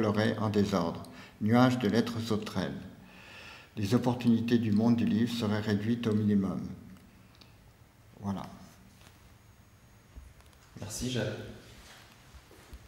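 An elderly man reads aloud close by, in a calm, measured voice.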